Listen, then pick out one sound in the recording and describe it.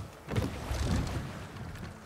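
A heavy axe strikes metal with a clang.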